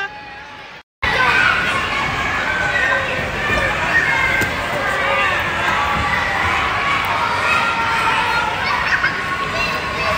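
Children shout and chatter in a large echoing hall.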